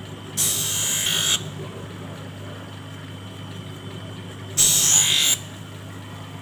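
A grinding wheel grinds the edge of a lens in short, harsh bursts.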